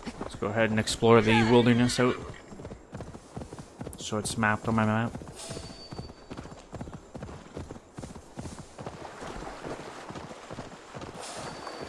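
A horse gallops, hooves thudding on the ground.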